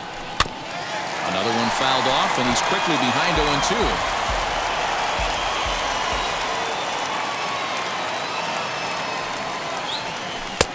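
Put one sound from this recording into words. A large crowd cheers and murmurs in a stadium.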